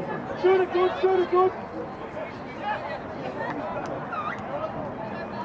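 Young women shout and call out to each other across an open field.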